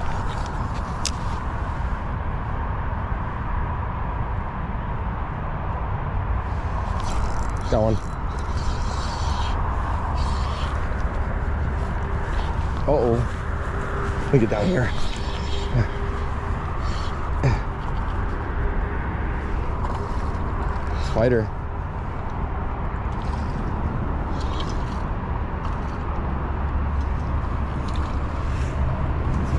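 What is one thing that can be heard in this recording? Wind rumbles against the microphone outdoors.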